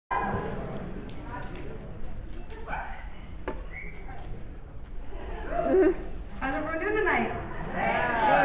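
A young woman sings into a microphone in a large hall.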